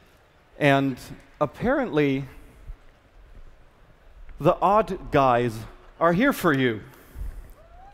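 A man speaks with animation into a microphone, heard over loudspeakers in a large hall.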